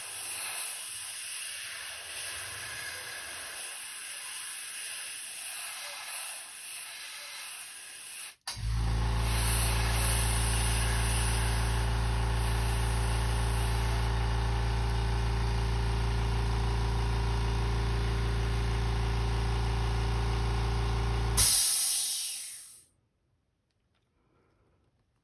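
Small metal parts click and tap as hands fit them together.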